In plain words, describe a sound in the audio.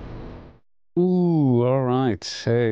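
A man speaks into a microphone up close.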